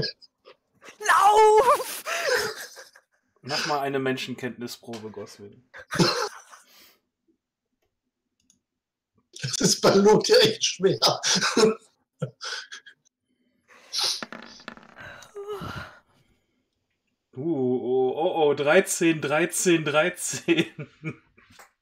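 Several men talk and laugh with animation over an online call.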